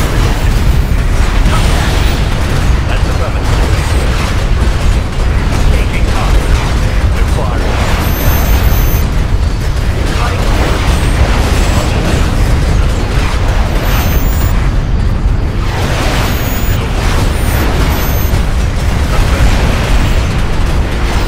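Laser guns fire rapidly in a busy space battle.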